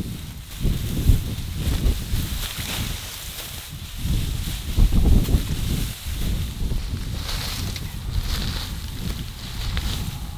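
Dry grass rustles and crackles as it is handled.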